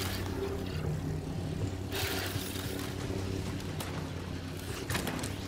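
A glowing energy blade hums steadily.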